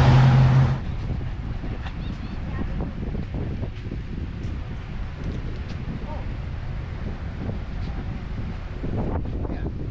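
Cars pass by on a nearby road.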